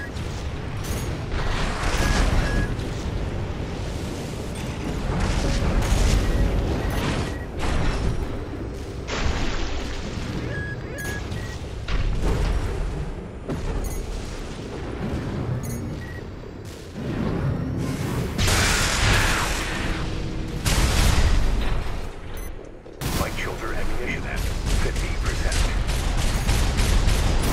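Heavy mechanical thrusters roar.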